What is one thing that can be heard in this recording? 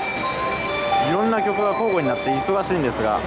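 Train brakes squeal as the train slows.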